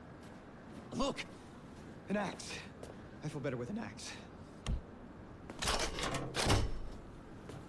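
A young man speaks urgently nearby.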